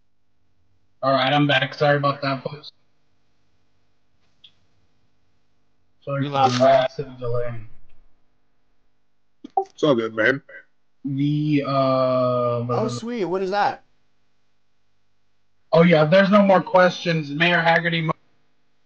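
A man talks through a microphone, in short bursts.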